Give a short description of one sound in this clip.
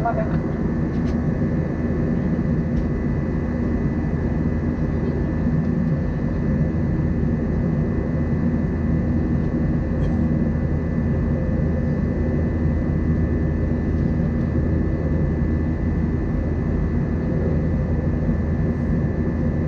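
A jet engine roars steadily with a low, constant drone inside an aircraft cabin.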